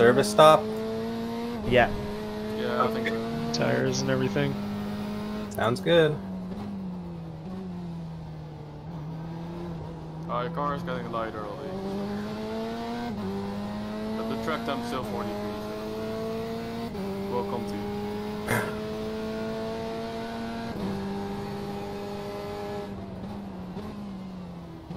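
A racing car engine roars steadily, with its pitch rising and dropping as it shifts gears.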